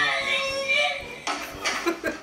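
A young child laughs loudly.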